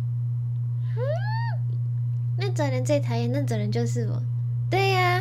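A young woman speaks playfully close to the microphone.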